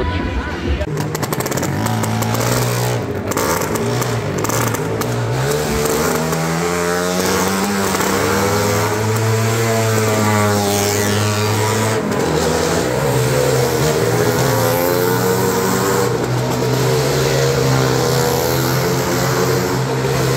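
Motorcycle engines roar and rev steadily inside an echoing round wooden arena.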